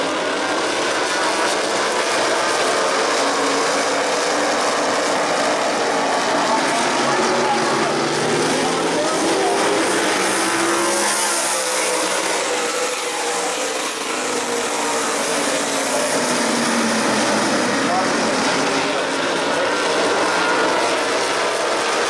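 Race car engines roar loudly as a pack of cars speeds around a track.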